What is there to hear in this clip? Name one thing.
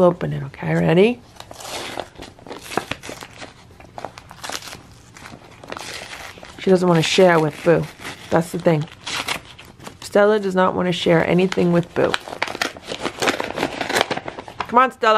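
Paper crinkles and rustles close by.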